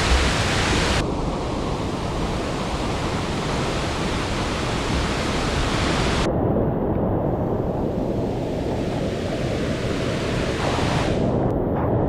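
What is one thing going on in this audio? A stream rushes loudly over rocks nearby.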